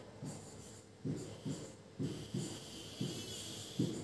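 A marker squeaks and taps on a board.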